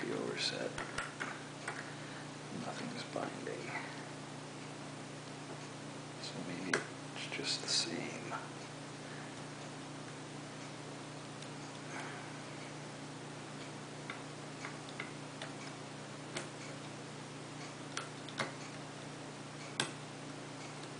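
Small metal pieces click and scrape softly as a lock is picked.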